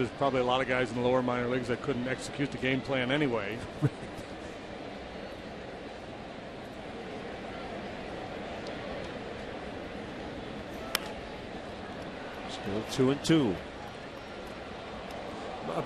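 A large crowd murmurs steadily outdoors.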